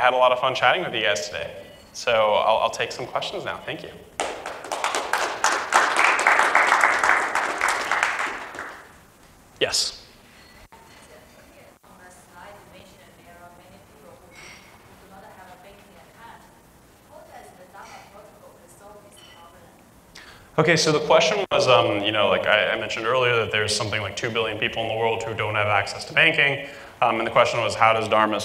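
A man speaks calmly into a microphone in a room, his voice carried through loudspeakers.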